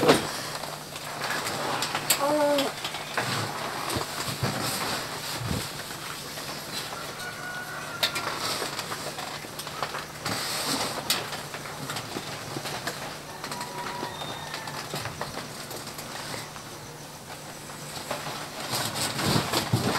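A cloth rustles and flaps as it moves about.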